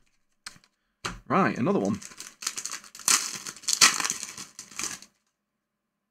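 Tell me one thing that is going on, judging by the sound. Foil packets crinkle and rustle in hands.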